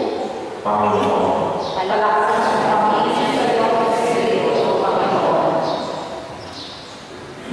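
A man sings slowly through a microphone, heard over loudspeakers in an echoing room.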